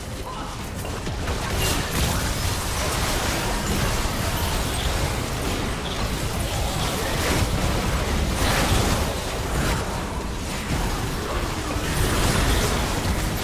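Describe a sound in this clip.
Spell effects crackle and burst in a fast, chaotic fight.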